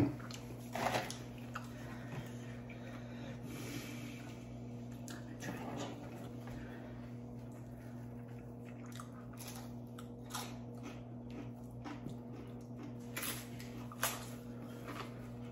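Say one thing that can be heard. Crunchy chips crackle as people bite and chew them.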